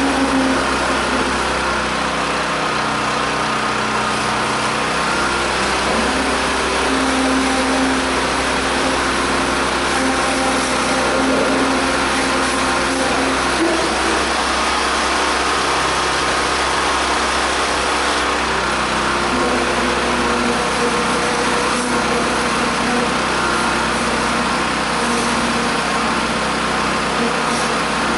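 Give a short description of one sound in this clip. A heavy engine hums and rumbles steadily nearby.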